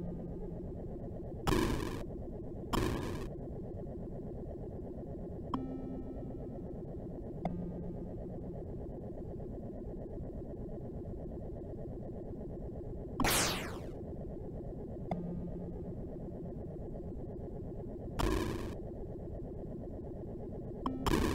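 Retro game music drones with a steady buzzing hum.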